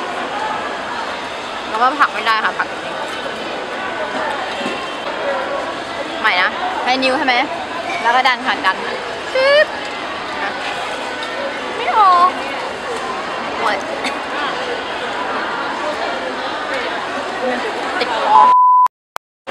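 A busy crowd murmurs in the background.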